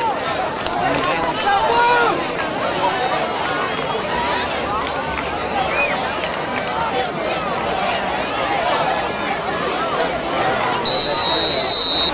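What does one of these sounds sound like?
A crowd of spectators talks and cheers outdoors.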